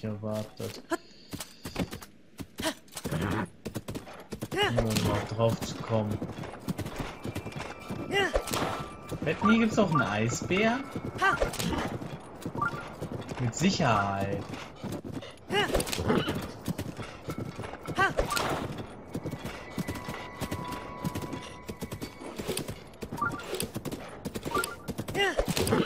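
A horse gallops with rapid hoof thuds.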